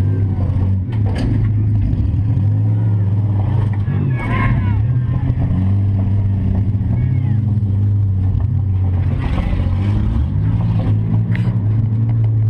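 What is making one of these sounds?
Metal bangs and rattles as the car jolts over rough ground.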